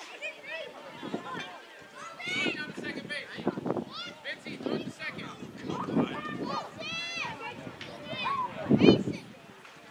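Young ball players call out and chatter across an open outdoor field.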